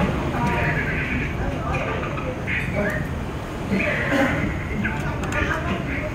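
Crispy fried chicken skin crackles as fingers tear it apart.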